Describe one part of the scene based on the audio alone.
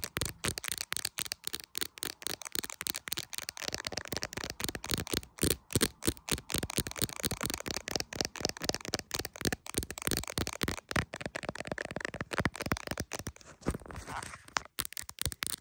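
Long fingernails tap and click rapidly on a phone case close up.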